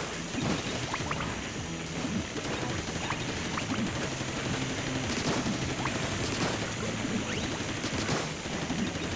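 Ink guns splatter in quick bursts.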